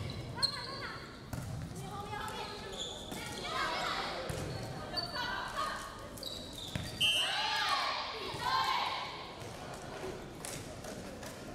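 Young women cheer and shout together in a large echoing hall.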